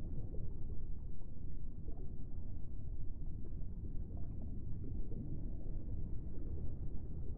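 Water churns with a low, muffled underwater rumble.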